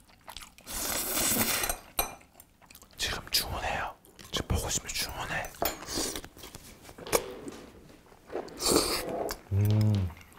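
A man slurps noodles loudly, close to a microphone.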